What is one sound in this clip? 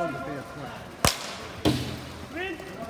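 A hockey stick knocks against a ball with a sharp crack.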